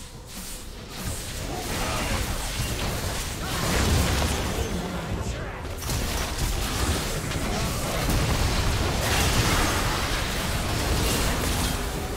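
Magic blasts and clashing spell effects crackle loudly in a fierce battle.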